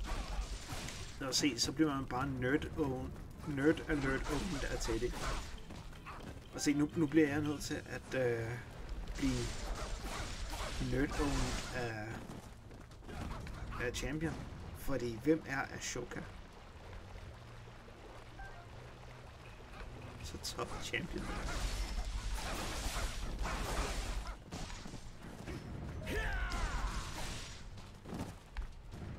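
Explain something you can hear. Swords clash and slash in a video game battle.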